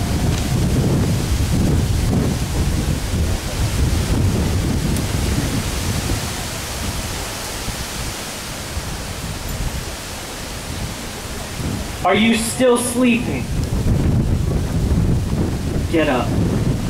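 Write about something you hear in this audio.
Wind buffets the microphone with a low rumble.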